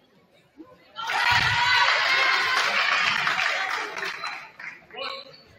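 A crowd cheers and claps loudly in an echoing gym.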